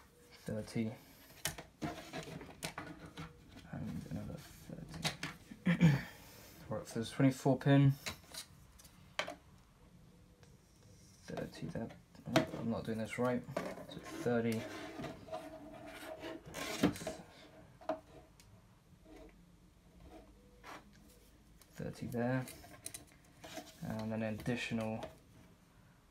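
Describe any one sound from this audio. A plastic ruler taps and scrapes against a wooden desk.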